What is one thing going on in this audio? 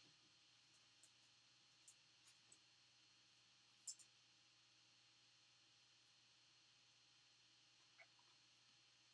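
A plastic card sleeve rustles and clicks softly in handling.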